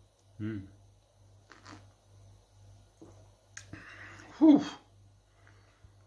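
A man sips a drink and swallows.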